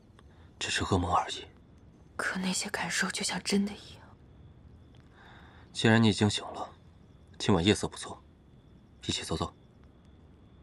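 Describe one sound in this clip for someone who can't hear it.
A young man speaks softly and calmly, close by.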